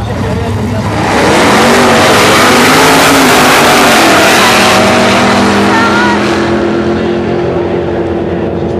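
Two race car engines roar loudly as the cars launch and speed away.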